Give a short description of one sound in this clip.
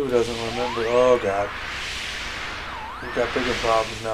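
A strong gust of wind whooshes.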